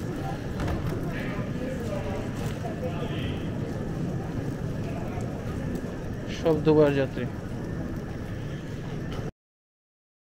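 Suitcase wheels roll across a hard floor.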